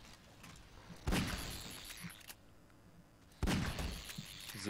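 A pistol fires a few sharp shots.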